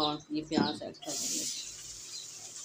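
Chopped onions drop into hot oil with a sudden loud hiss.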